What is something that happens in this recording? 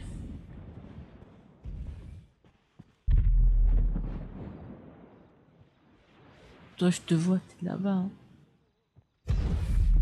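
Gunshots crack in bursts.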